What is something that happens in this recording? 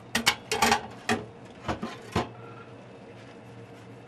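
Dishes clink as they are washed in a sink.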